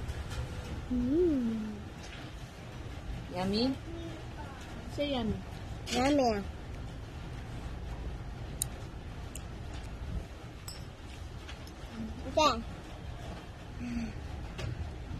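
A young girl speaks and hums close by in a high, playful voice.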